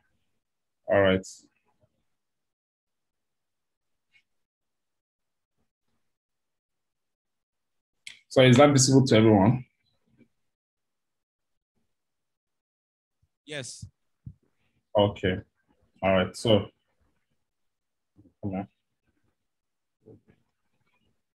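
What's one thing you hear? A man speaks in short, halting phrases over an online call.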